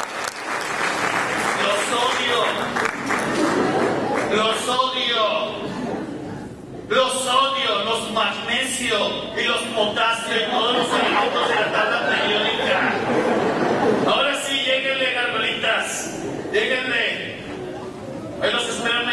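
A man sings with animation, amplified through loudspeakers in a large hall.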